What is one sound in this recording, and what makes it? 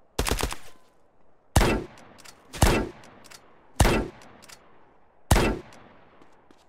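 Sniper rifle shots ring out loudly, one after another, each echoing briefly.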